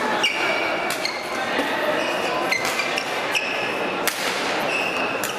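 Badminton rackets strike a shuttlecock back and forth in a large hall.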